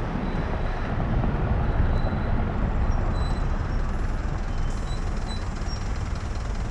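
Traffic rumbles steadily nearby outdoors.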